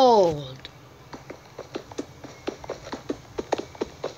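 Game blocks crack and break.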